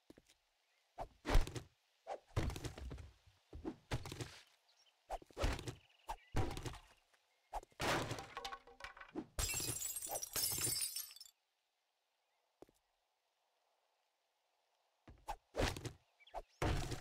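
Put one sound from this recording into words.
An axe strikes wooden furniture with heavy thuds.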